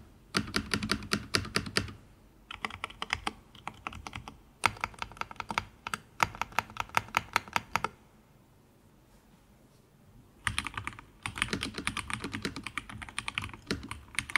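Keyboard keys clack rapidly under typing fingers.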